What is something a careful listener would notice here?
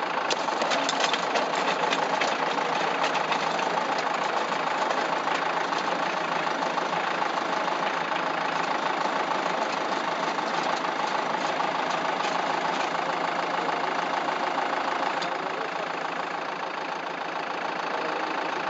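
A rotary tiller engine roars steadily up close.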